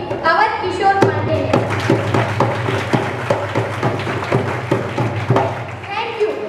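People clap their hands in rhythm.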